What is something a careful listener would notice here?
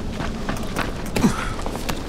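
Hands slap onto a stone ledge.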